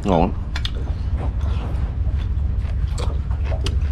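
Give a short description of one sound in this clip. A man slurps soup from a bowl.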